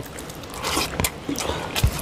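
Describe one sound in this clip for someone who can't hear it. A man chews food noisily close by.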